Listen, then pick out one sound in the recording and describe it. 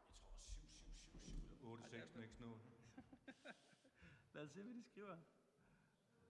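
A man talks in a large echoing hall.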